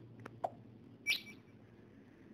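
A short bright electronic chime rings.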